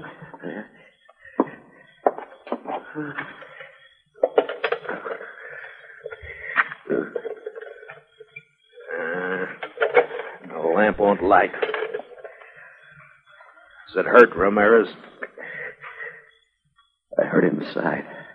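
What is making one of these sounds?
A man speaks through a tinny old radio loudspeaker.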